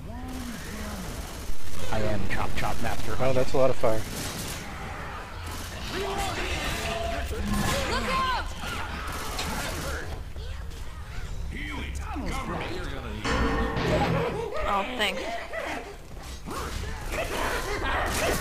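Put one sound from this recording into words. Zombies snarl and growl.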